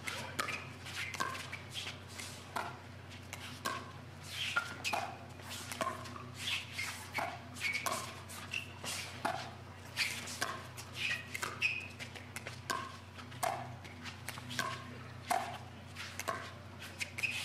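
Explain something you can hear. Paddles hit a plastic ball in a quick, sharp back-and-forth rally.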